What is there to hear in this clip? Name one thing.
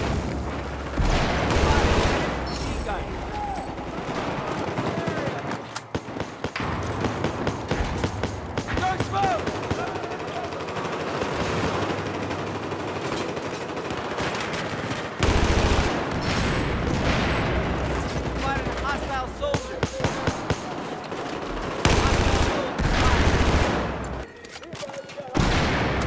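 An explosion booms and rumbles.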